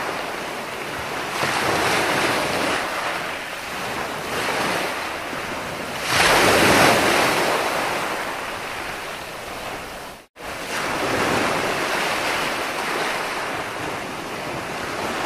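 Waves break and wash up on a shore in rolling surges.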